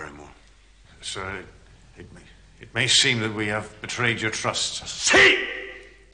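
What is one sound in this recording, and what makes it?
A man answers calmly and politely.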